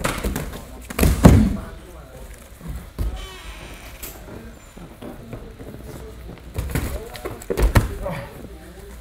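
A body thuds heavily onto a padded mat.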